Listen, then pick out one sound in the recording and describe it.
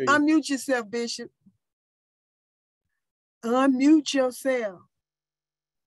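A woman speaks with animation into a close microphone.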